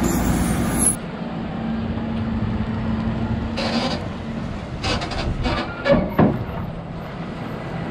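Feed mixer machinery whirs and rattles.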